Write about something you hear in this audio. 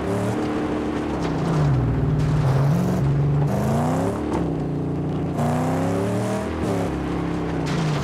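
Tyres crunch over sand and gravel.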